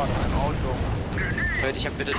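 Flames crackle and roar close by.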